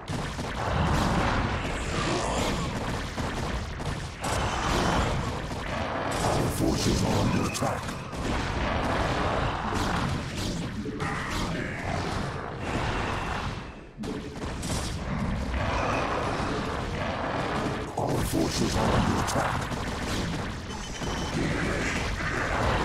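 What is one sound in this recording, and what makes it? Laser blasts and explosions crackle in a battle.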